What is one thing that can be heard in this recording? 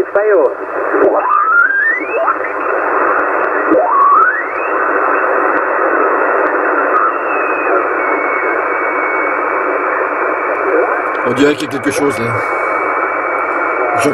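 Static hisses steadily from a radio loudspeaker.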